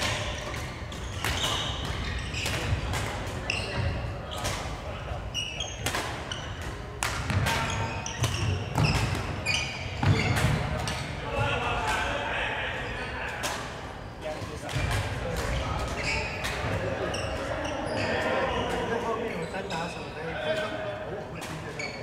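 Rackets strike a shuttlecock with sharp pops, echoing in a large hall.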